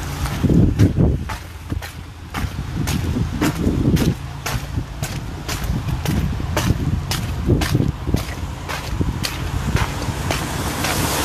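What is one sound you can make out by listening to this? Footsteps tap along a wet pavement.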